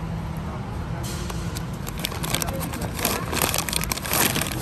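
Plastic candy packaging crinkles and rustles as a hand touches it.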